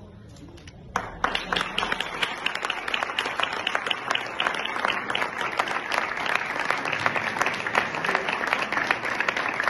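A small crowd applauds loudly.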